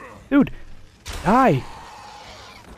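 A small creature shrieks in pain.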